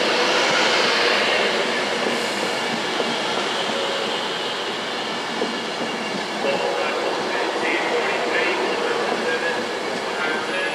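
A train rushes past close by with a steady roar.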